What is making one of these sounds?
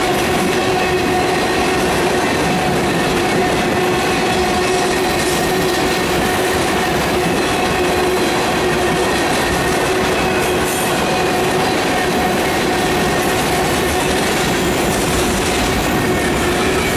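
A freight train rumbles past close by, loud and steady.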